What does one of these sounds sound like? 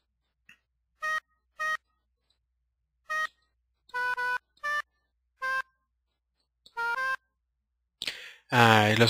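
Short electronic violin notes play one after another.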